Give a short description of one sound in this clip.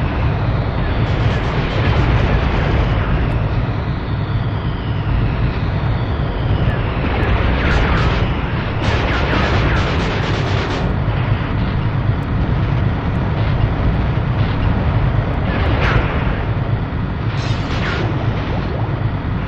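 Cannon shots and explosions boom in bursts.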